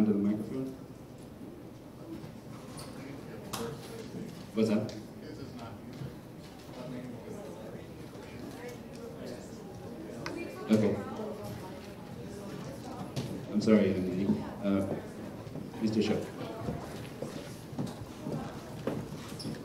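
A man speaks into a microphone, heard through loudspeakers in a large echoing hall.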